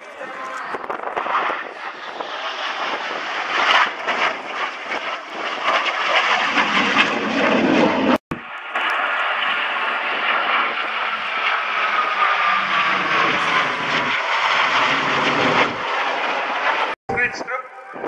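Jet engines roar loudly overhead with a rumbling rush.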